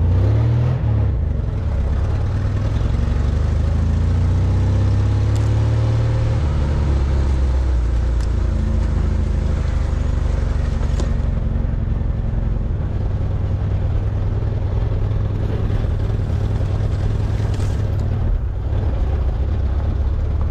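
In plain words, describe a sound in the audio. Tall grass brushes and scrapes against the side of a vehicle.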